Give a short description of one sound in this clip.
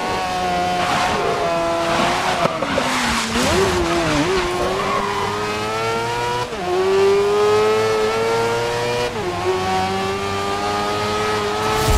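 Tyres hiss and spray over a wet track.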